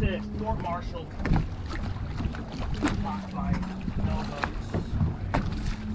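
A fish splashes in the water beside a boat.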